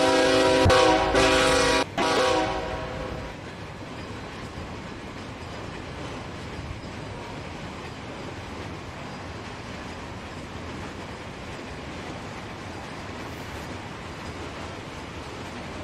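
A freight train rolls steadily past on the tracks.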